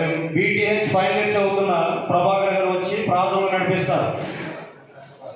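A young man sings loudly into a microphone through a loudspeaker.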